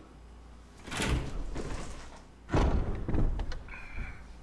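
A heavy wooden door swings open and slams shut with a booming thud.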